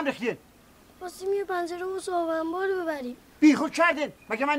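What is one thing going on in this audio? A young boy speaks with worry.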